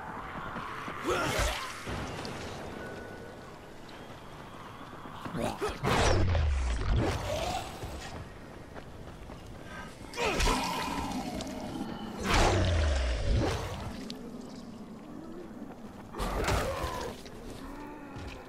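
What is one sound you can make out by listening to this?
A weapon slashes and thuds into flesh again and again.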